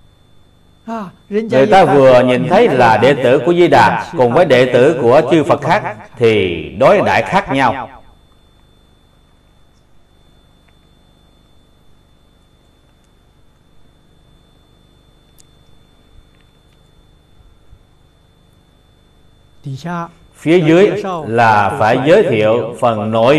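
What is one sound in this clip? An elderly man speaks calmly and warmly, close to a microphone.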